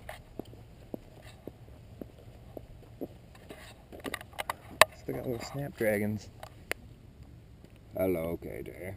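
Footsteps crunch steadily on a gravel path.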